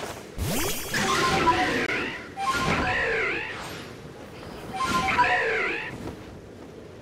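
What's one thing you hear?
A large bird shrieks in rising and falling cries.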